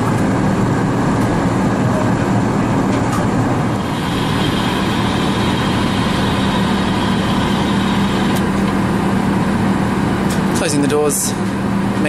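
A jet airliner's engines roar steadily from inside the cabin.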